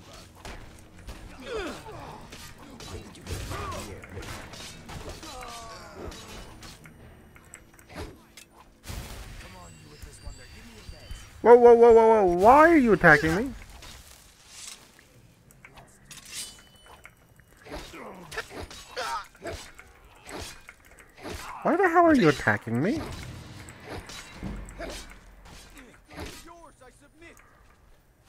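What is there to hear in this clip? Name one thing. Swords clang and strike in quick blows.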